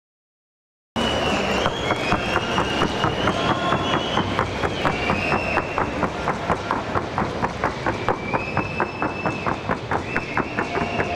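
A horse's hooves drum rapidly and evenly on a wooden board.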